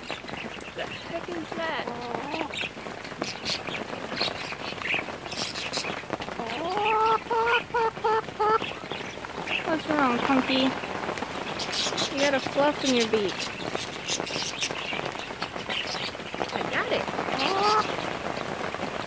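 A woman talks softly and cheerfully close to the microphone.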